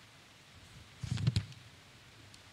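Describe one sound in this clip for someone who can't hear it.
A page rustles and knocks against a microphone.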